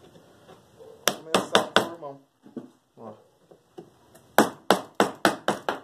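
A hammer knocks sharply on a wooden board in quick blows.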